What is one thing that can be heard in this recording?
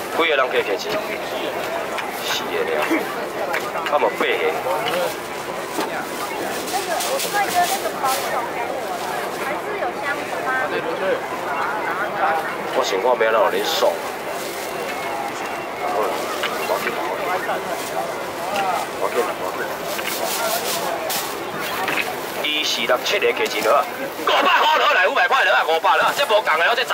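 A crowd of men and women chatters busily close by.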